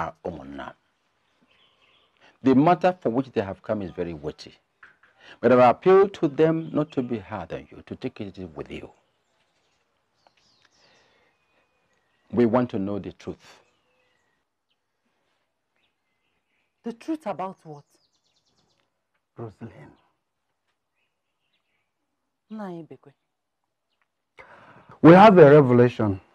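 A man speaks slowly and firmly, close by.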